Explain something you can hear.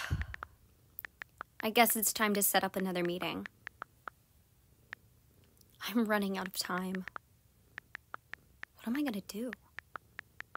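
A finger taps on a phone touchscreen.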